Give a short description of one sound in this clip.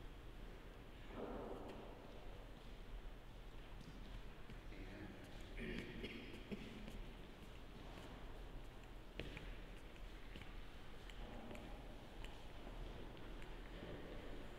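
Footsteps walk slowly across a hard floor in an echoing hall.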